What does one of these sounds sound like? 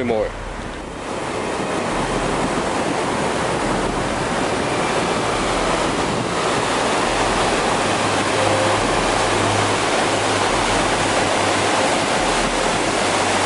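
A fast stream rushes loudly over rocks.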